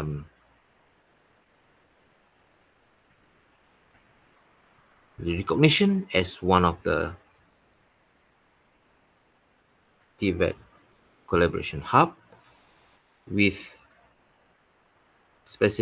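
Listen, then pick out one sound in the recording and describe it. A man speaks calmly in short phrases over an online call, with pauses.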